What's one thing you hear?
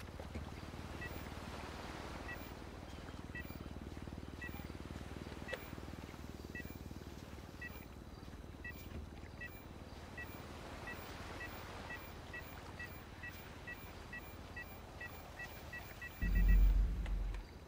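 A metal detector beeps, faster and faster.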